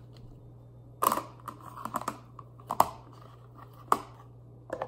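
Apple slices clatter softly into a plastic container.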